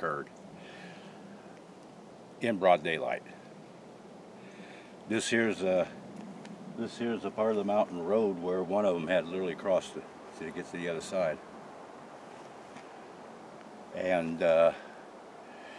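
A middle-aged man speaks calmly and clearly outdoors, close by.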